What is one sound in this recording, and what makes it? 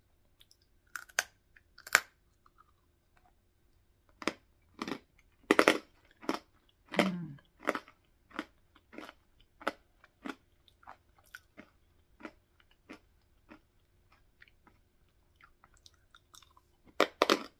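A woman bites into crisp food with a loud crunch.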